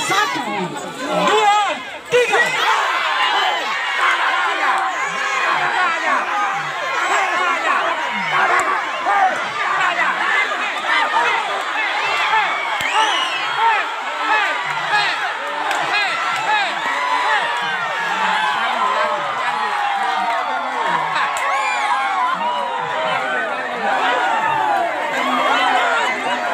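A large outdoor crowd of men, women and children cheers and shouts excitedly close by.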